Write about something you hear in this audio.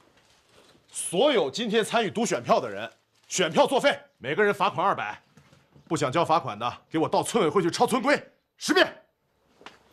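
A man speaks firmly and sternly, close by.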